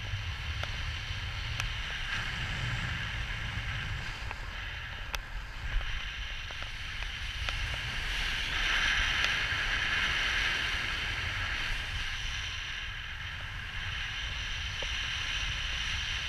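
Wind rushes loudly past the microphone outdoors.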